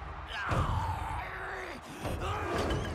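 A man growls in a deep, menacing voice.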